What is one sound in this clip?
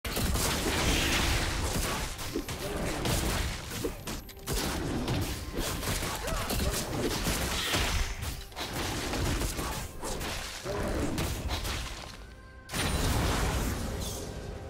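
Magic blasts and hits crackle in a fast fight between game characters.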